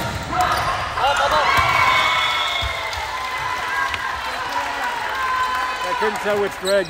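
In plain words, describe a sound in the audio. Young women players shout and call to each other in an echoing gym.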